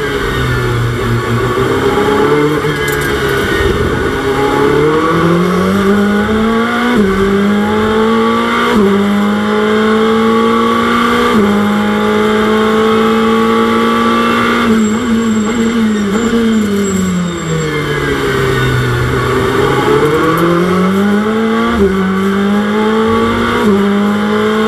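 A racing car engine roars, revving up through the gears and dropping as it slows.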